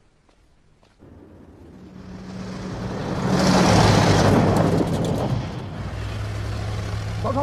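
An old truck engine rumbles loudly as a truck drives past.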